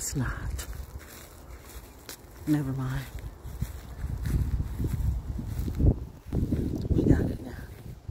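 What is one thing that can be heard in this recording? Wind rumbles across a phone's microphone outdoors.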